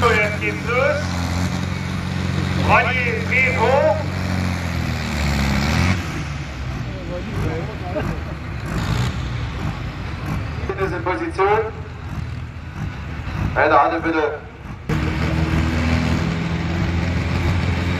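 A tractor engine roars and rumbles nearby.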